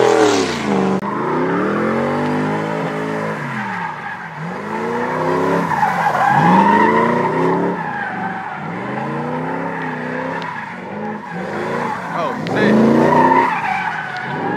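Tyres screech on pavement as a car slides in circles.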